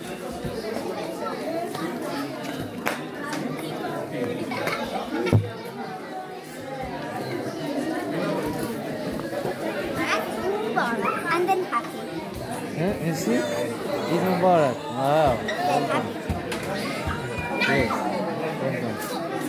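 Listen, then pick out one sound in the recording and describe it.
Children chatter and shout in a large echoing hall.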